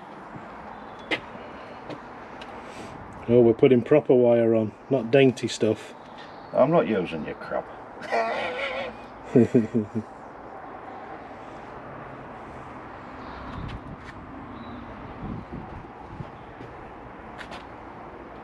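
Twigs snap and rustle as a man prunes a shrub.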